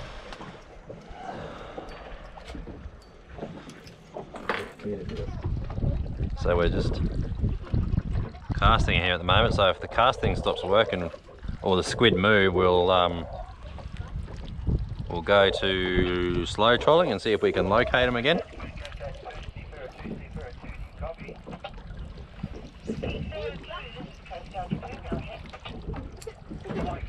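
Water laps gently against the hull of a boat.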